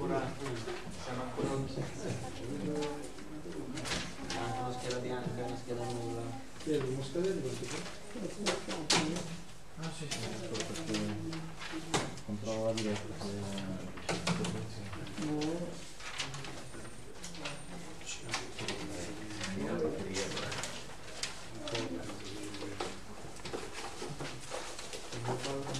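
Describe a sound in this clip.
A man speaks calmly through a microphone in a room with some echo.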